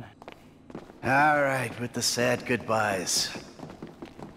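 A man answers calmly.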